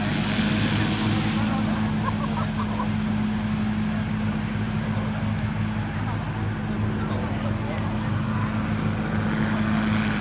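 A small aircraft engine drones steadily overhead.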